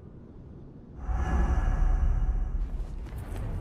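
A deep magical rumble swells and hums, then cuts off.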